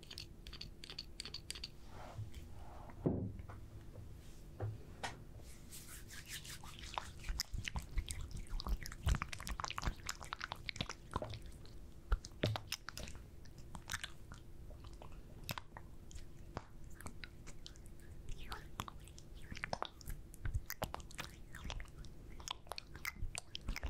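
Hands rustle and crinkle very close to a microphone.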